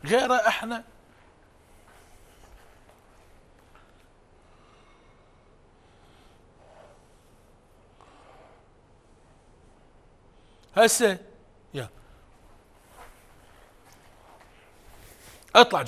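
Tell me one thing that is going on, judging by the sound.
A man exclaims loudly and with animation close by.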